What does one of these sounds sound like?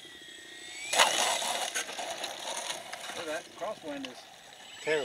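A model airplane's wheels touch down and roll over rough tarmac.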